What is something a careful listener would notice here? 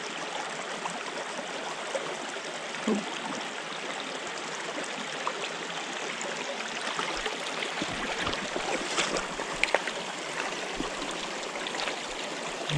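A shallow stream trickles and babbles over rocks.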